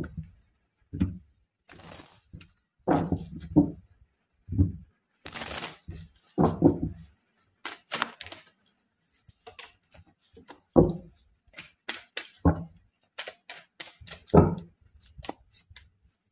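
Playing cards riffle and flick as a deck is shuffled.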